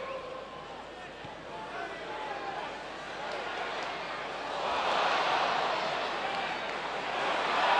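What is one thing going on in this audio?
A large stadium crowd chants and sings, swelling louder as an attack builds.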